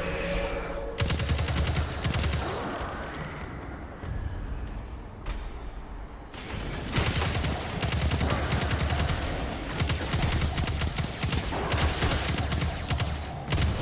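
A rapid-fire gun shoots in bursts.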